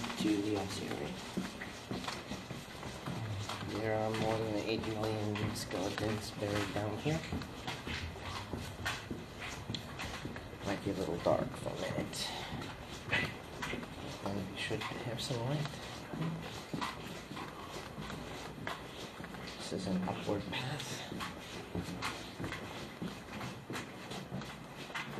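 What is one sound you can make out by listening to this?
Footsteps echo on a stone floor in an echoing underground passage.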